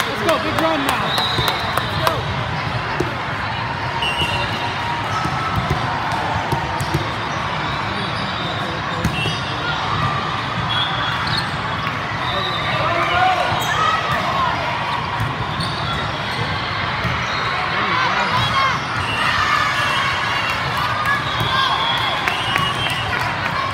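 Squeaky shoes squeal on a hard court.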